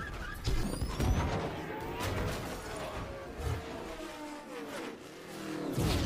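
Cars crash and scrape along a road.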